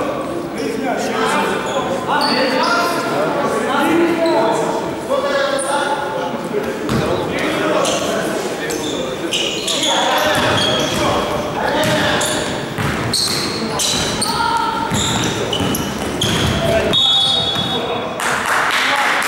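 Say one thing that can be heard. Basketballs bounce with thuds on a wooden floor in a large echoing hall.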